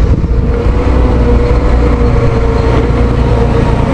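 A diesel wheel loader drives past close by.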